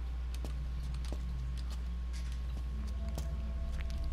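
Footsteps scuff slowly on a stone floor.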